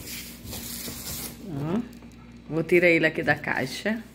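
Plastic sheeting crinkles under a hand.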